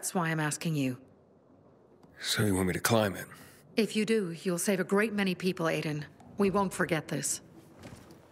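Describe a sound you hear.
A young woman speaks calmly and closely.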